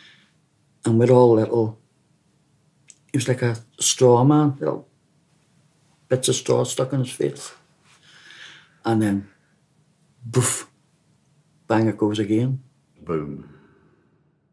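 A middle-aged man speaks with animation close by.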